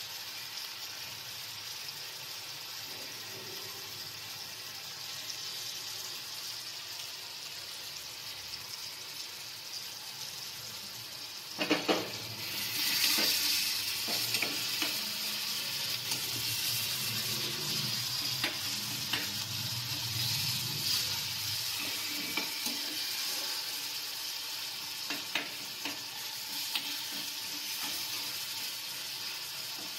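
Food sizzles and fries in a pan.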